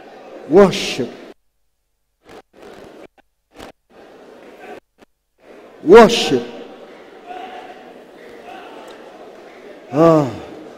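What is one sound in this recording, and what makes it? A man preaches loudly through a microphone, with echo in a large hall.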